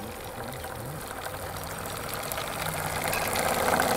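A model steam engine chuffs.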